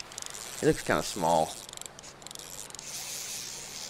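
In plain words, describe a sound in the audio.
A fishing reel clicks as line is reeled in.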